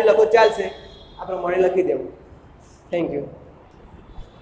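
A young man speaks clearly and calmly, close by.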